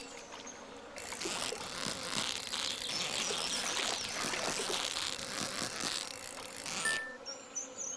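A fishing reel whirs steadily.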